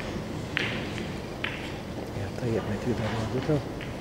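Snooker balls click together as they collide.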